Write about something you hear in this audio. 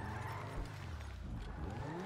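Tyres screech as a car drifts through a turn.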